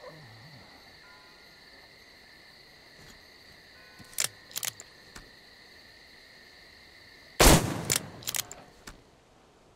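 Fires crackle and burn nearby.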